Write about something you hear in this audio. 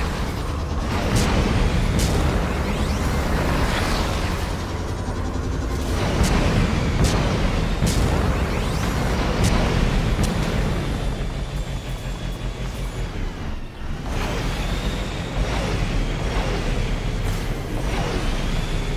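A hovering vehicle's engine hums and roars steadily.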